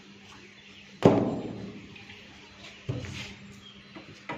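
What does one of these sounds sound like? Something knocks down onto a wooden surface.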